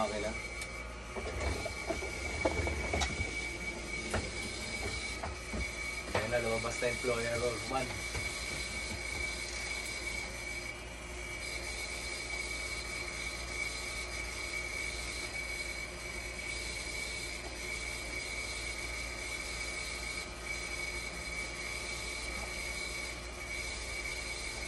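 A dialysis machine sounds a steady high tone.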